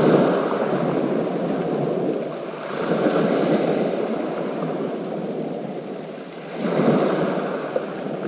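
Small waves break and wash over a pebble beach.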